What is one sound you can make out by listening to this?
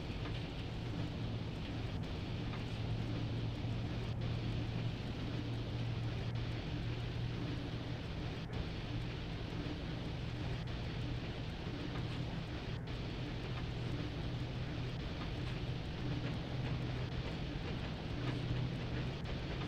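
A locomotive engine hums steadily.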